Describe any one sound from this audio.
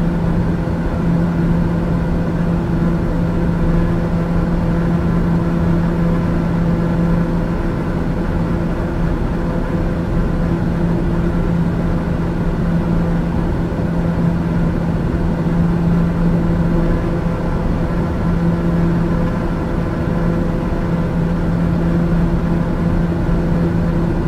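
An aircraft engine drones steadily inside a cockpit.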